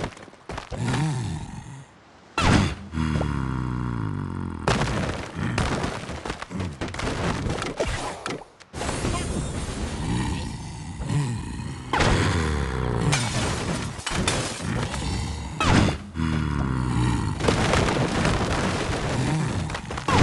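Bouncy game music plays throughout.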